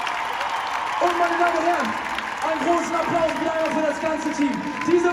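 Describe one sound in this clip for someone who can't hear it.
A large crowd sings together loudly.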